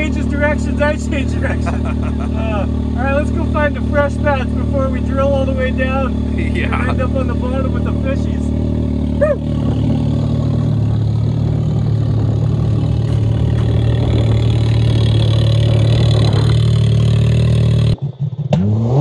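A turbocharged side-by-side engine drones under load.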